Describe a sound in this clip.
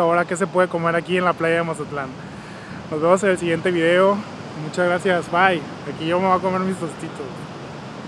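A young man talks cheerfully, close to the microphone.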